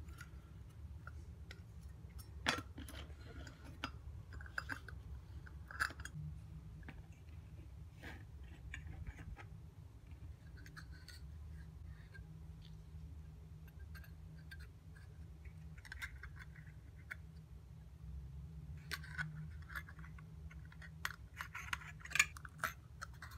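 Small metal parts clink and tap against each other.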